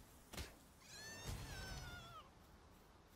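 A fiery blast bursts with a deep rumbling boom.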